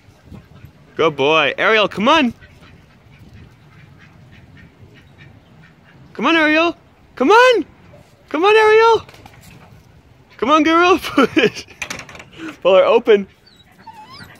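A dog barks and howls loudly in bursts.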